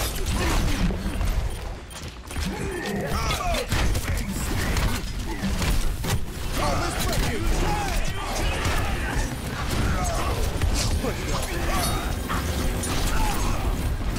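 Explosions thud.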